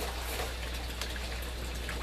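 Pruning shears snip through a vine stem.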